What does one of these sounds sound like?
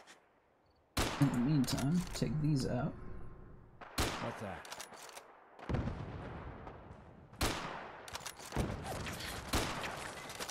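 A rifle fires sharp, loud shots that echo away.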